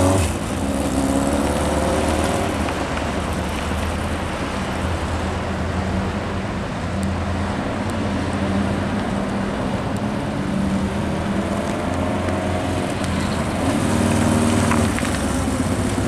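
A motorcycle engine revs up and down now and then.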